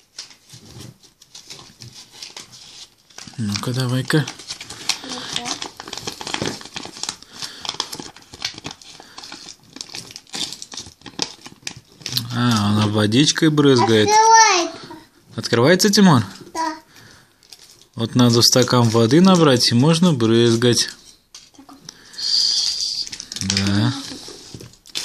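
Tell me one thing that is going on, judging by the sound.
A plastic wrapper crinkles and rustles in hands close by.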